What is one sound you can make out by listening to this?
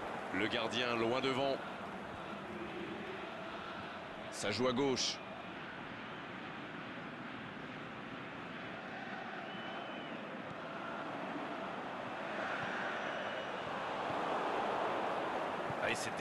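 A stadium crowd murmurs and cheers steadily, swelling louder toward the end.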